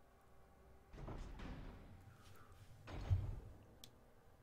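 A heavy double door creaks open and clangs shut.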